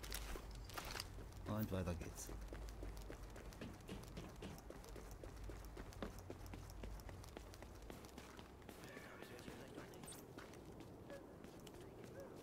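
Quick running footsteps crunch over snow and hard ground.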